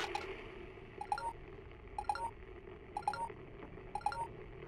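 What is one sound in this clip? A handheld device beeps at a steady pace.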